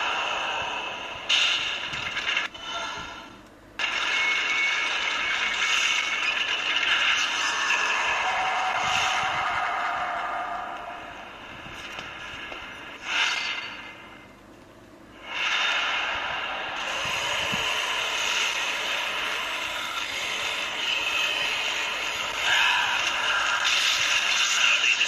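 Video game music plays through a small loudspeaker.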